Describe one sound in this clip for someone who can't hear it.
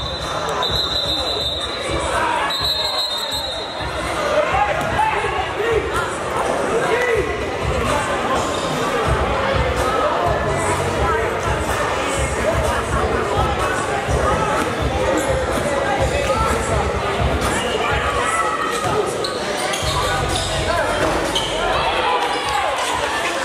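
A crowd of spectators chatters and calls out in a large echoing gym.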